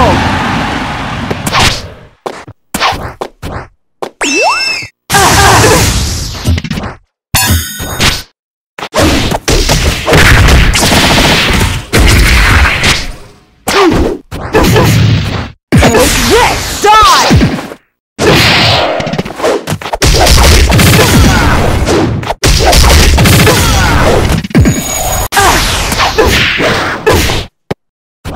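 Game fighting sound effects of punches, whooshes and blasts crack in quick, choppy bursts.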